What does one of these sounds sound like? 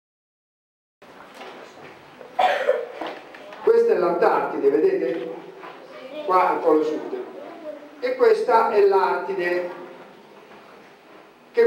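A middle-aged man speaks with animation into a microphone in an echoing hall.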